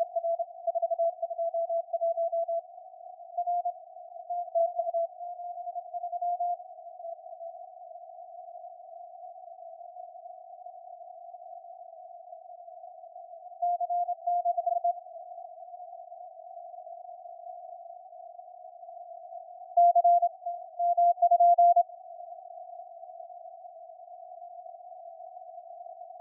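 Radio static hisses steadily.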